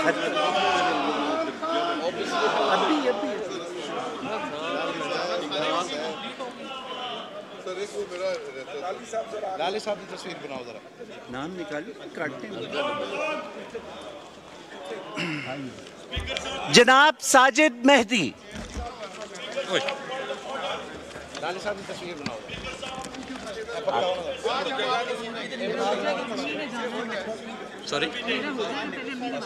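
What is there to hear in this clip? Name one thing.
Many men and women murmur and talk at once in a large echoing hall.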